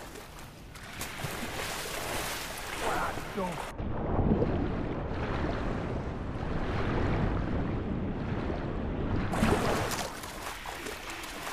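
Water splashes as a swimmer strokes through it.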